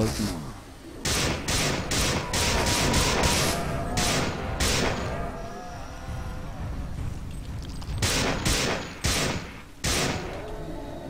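A rifle fires a rapid series of loud shots.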